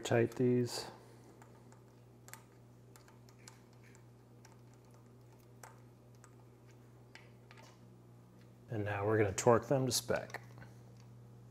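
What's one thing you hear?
A socket wrench clicks as it turns a bolt.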